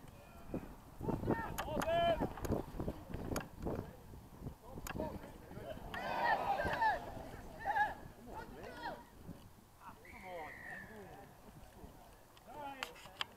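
Spectators shout and cheer outdoors from a distance.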